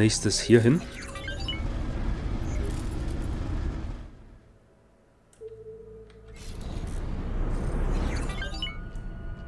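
A spaceship engine roars steadily.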